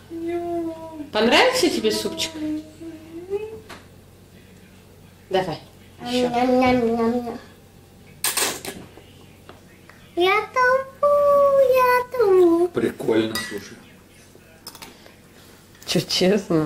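A young boy talks in a high, animated voice close by.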